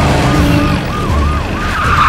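A jeep engine rumbles as it drives over dirt.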